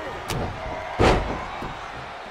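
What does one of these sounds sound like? A heavy body slams down onto a wrestling mat with a loud thud.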